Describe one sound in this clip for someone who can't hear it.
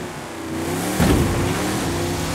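A car lands with a heavy thud after a jump.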